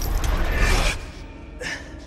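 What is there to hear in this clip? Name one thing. A man breathes out in relief.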